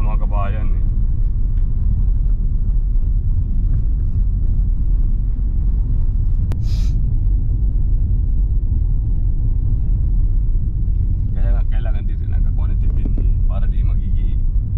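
Tyres roll over a rough road.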